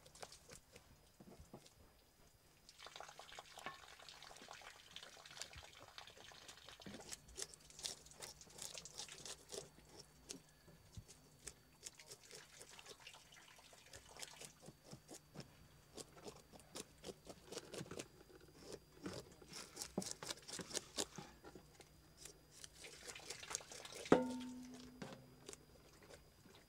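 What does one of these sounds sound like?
A knife scrapes scales off a fish with short, quick rasps.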